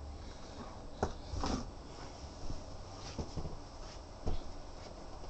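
Footsteps thump on a wooden floor close by.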